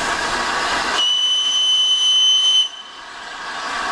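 A steam locomotive blows a shrill, steady whistle.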